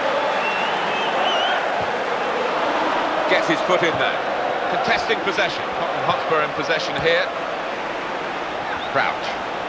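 A football is kicked several times.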